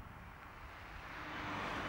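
Cars drive along a road.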